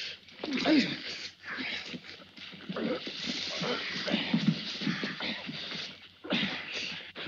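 Two men grunt and scuffle in a struggle.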